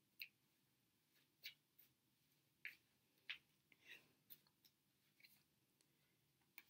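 Playing cards are shuffled and tapped in the hands, with sharp papery clicks.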